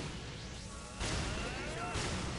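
Electric crackling snaps in sharp bursts.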